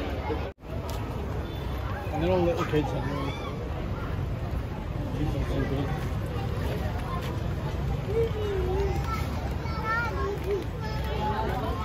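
A crowd of people chatter nearby outdoors.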